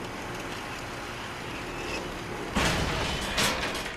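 A metal lattice gate rattles open.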